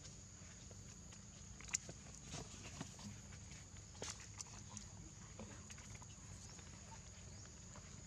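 A monkey softly rustles and scratches its fur while grooming.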